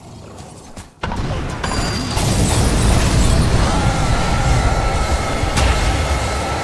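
Game battle effects crash and boom loudly.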